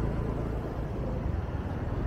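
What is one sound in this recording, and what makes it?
A motorbike engine hums as the motorbike rides past on a nearby road.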